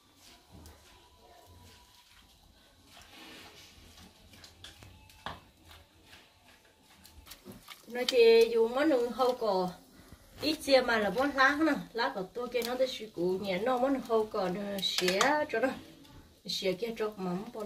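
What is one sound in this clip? A spoon stirs and scrapes in a pot.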